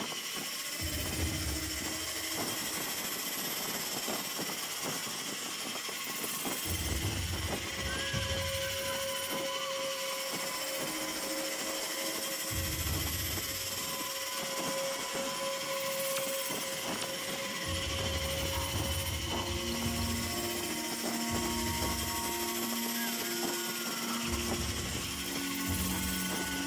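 Wind rushes loudly past a figure flying at speed.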